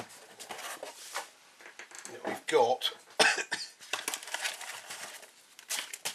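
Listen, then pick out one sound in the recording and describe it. A cardboard box slides and scrapes on a hard surface.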